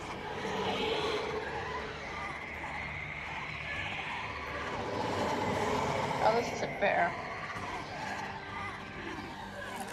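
A beast snarls and growls.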